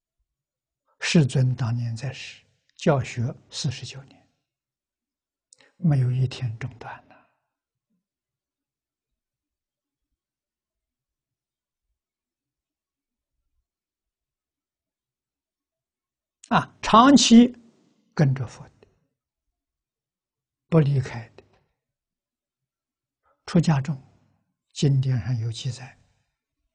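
An elderly man speaks calmly through a close microphone, in short unhurried phrases with long pauses.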